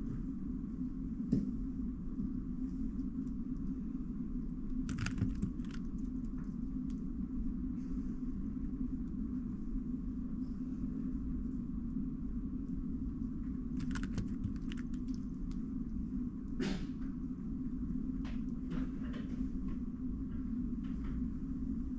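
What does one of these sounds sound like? Plastic puzzle cube layers click and clack as they are turned quickly by hand.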